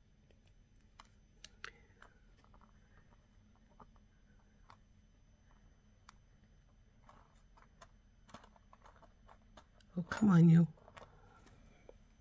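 Small metal pieces click and tap on a hard surface.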